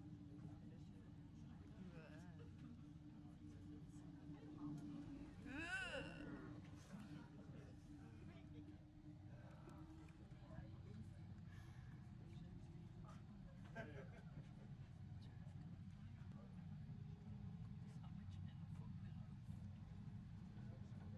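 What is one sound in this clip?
A cable car rumbles steadily as it glides along its cable.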